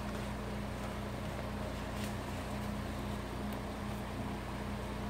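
Paper rustles and crinkles as pages and tags are handled.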